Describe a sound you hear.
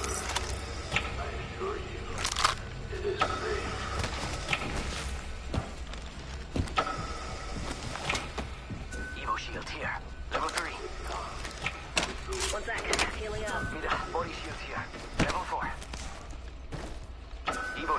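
Quick footsteps clatter on a metal floor in a video game.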